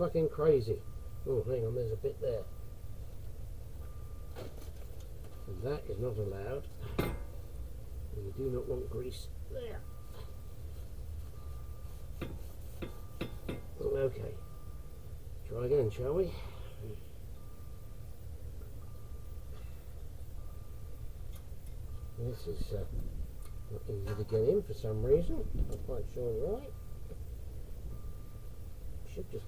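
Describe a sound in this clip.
Metal tools clink and click against car brake parts.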